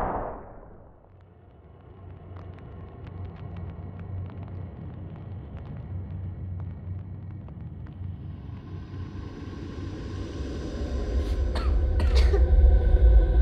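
Flames crackle and roar steadily, growing louder.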